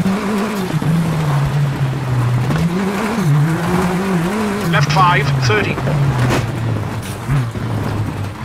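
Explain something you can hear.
A rally car engine drones and revs as the car drives fast.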